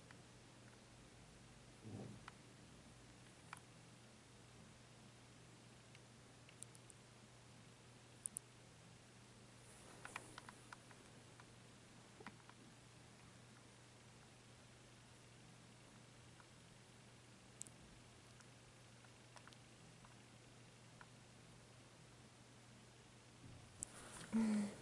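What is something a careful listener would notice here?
A finger softly rubs against a kitten's fur.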